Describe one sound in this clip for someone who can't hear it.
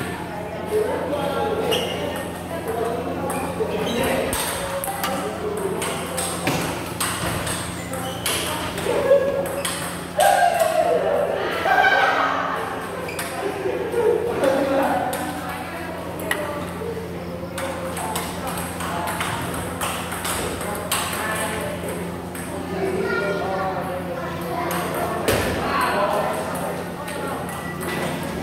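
A ping-pong ball clicks back and forth on paddles and a table in a hard-walled room.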